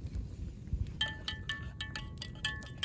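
A metal spoon clinks as it stirs in a steel pitcher.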